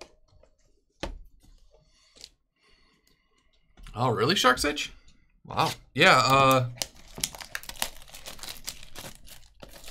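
Cardboard boxes slide and tap as hands open them.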